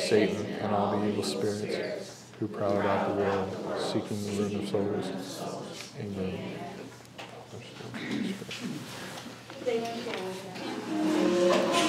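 A man speaks calmly and steadily in a room with a slight echo.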